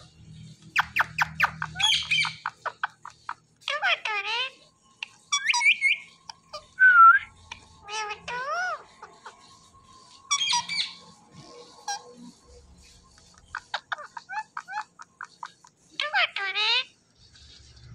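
Parrots chatter and squawk close by in quick bursts.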